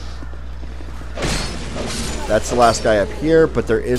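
A sword swings and strikes in a short fight.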